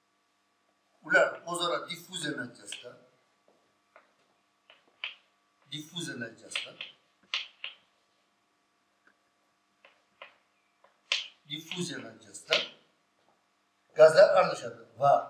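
An elderly man speaks calmly, explaining in pauses, close by.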